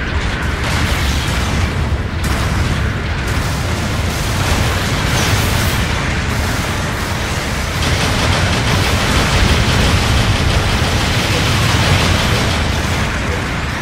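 Heavy machine guns fire in rapid bursts.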